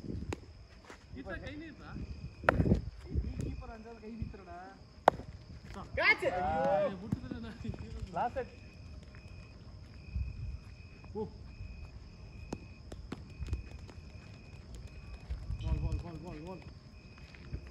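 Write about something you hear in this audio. Men call out and talk loudly across an open outdoor field.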